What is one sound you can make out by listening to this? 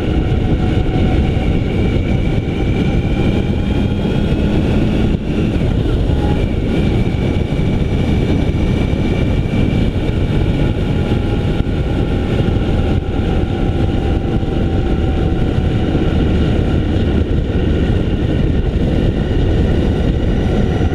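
A motorcycle engine hums steadily at close range, its pitch slowly rising and falling.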